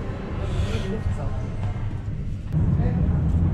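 A young woman and men talk quietly nearby.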